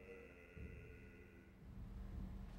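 A man sings in a large, echoing hall.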